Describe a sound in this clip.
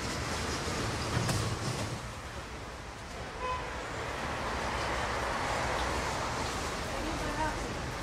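Footsteps of passengers shuffle across a platform.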